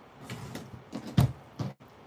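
A tape dispenser knocks on a table.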